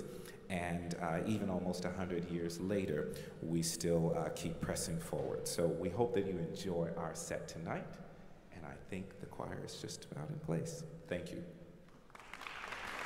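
A man speaks calmly into a microphone over loudspeakers in a large echoing hall.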